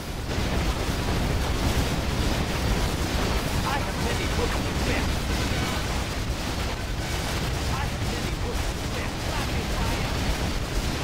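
Explosions boom and rumble over and over in a heavy battle.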